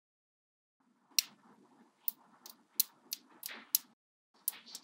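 Metal magnetic balls rattle and roll between fingers.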